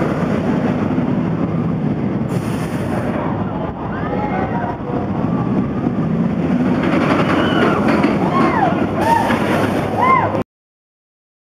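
A roller coaster train roars along its track.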